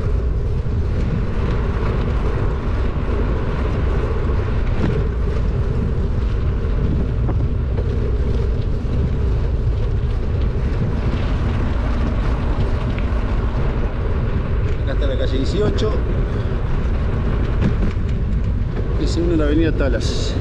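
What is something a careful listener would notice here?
Tyres hum steadily on asphalt.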